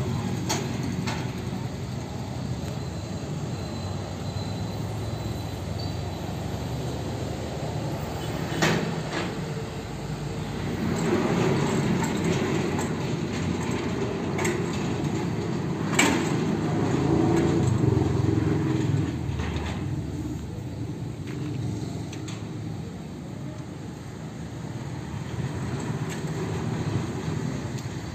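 A metal gate rattles and clanks as it is pushed along.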